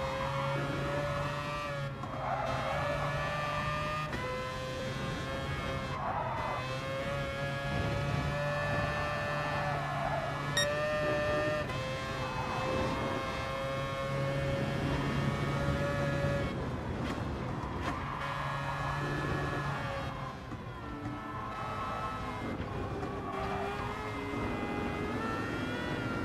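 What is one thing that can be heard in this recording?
A racing car engine roars at high revs, shifting gears and slowing for bends.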